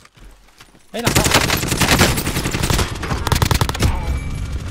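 Rapid gunfire rings out in quick bursts.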